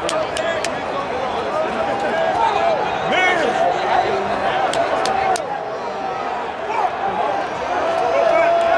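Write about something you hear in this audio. A large stadium crowd cheers and shouts all around, close by.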